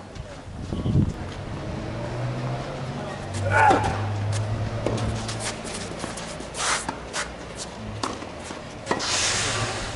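A tennis ball is struck by a racket with sharp pops.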